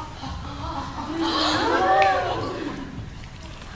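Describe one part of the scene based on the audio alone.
A young man exclaims with animation nearby.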